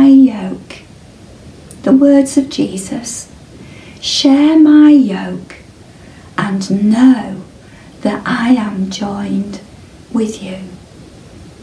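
An older woman speaks calmly and clearly, close to a microphone.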